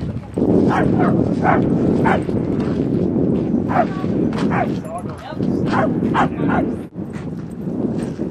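Dogs yelp and whine in short bursts nearby.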